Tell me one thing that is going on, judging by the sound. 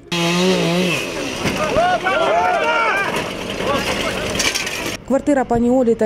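A crowd of men shout and call out to each other outdoors.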